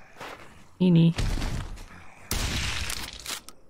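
Gunshots bang out close by.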